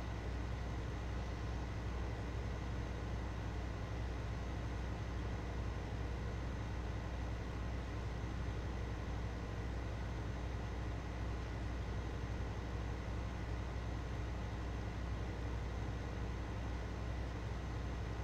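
A tractor engine drones steadily at a constant low pitch.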